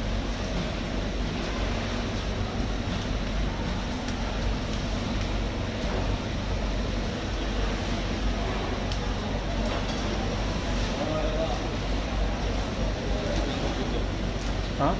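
A knife cuts and scrapes through fish flesh.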